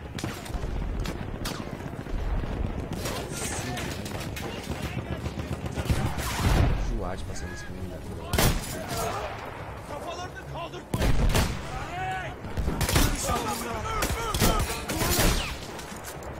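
Gunshots and explosions crack and boom throughout.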